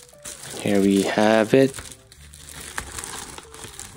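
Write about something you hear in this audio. A padded plastic mailer crinkles as it is handled.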